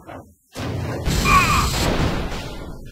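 A steel chair strikes a body with a loud metallic clang.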